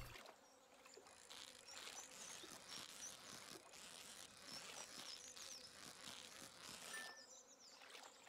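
A fishing reel whirs steadily.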